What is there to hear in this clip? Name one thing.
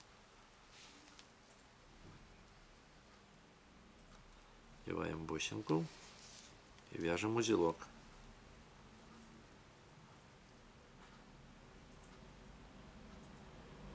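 Fingers handle and twist a thin fishing line with faint rustles.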